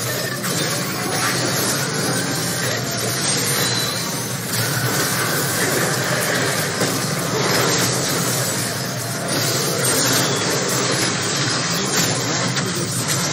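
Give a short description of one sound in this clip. Game spell effects and combat sounds burst and clash.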